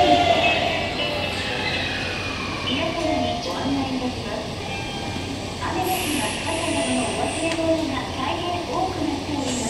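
A train rolls slowly into a station and comes to a stop.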